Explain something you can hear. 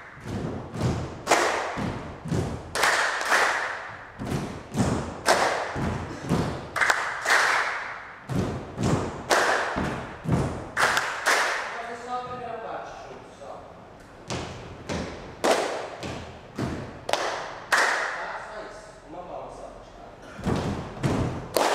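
A group of people clap their hands in a rhythm in an echoing room.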